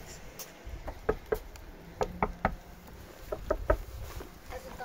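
A boy knocks on a door several times.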